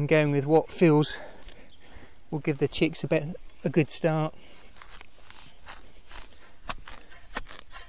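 A spade scrapes and chops into soil.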